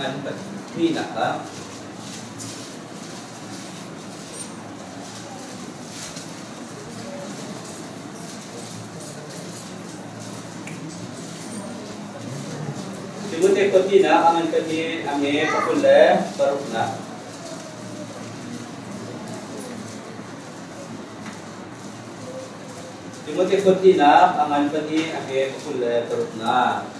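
A man speaks calmly in a room with a slight echo, pausing between phrases.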